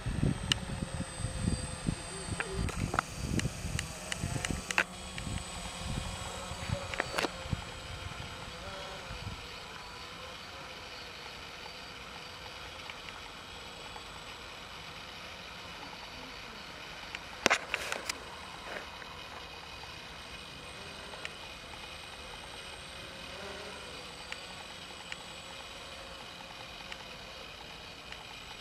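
A drone buzzes with a steady whine overhead.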